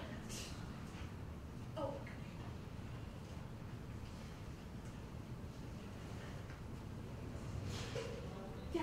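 A young woman speaks calmly into a microphone in a roomy hall.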